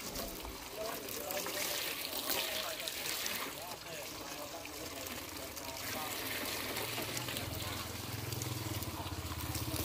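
Water pours from a hose and splashes onto glass.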